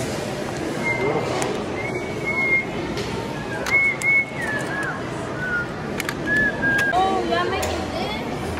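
Plastic toy bricks click and clatter.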